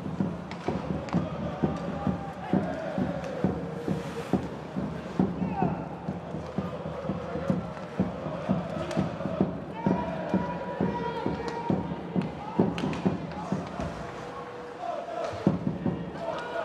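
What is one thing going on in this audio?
Hockey sticks knock against a puck with sharp clacks in a large echoing arena.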